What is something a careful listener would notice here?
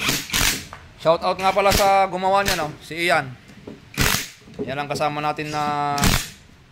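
A power tool whines, rising and falling in pitch.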